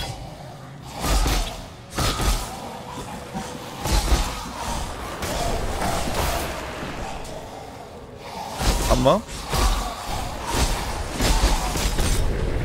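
Game spells burst with sharp whooshing blasts.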